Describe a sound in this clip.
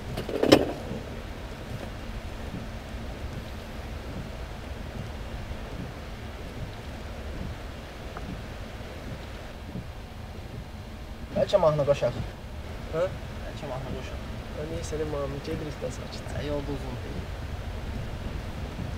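A car engine hums low and steadily from inside the car.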